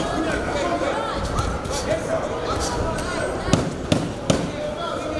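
A man talks nearby in an echoing hall.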